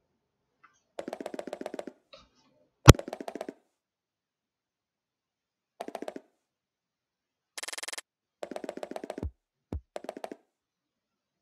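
Quick soft footsteps patter in short bursts.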